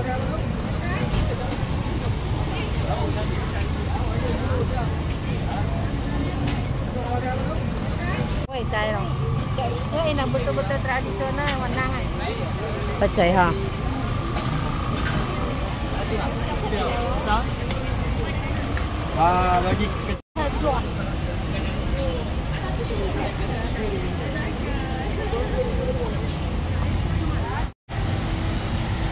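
A crowd of men and women chatter all around, outdoors.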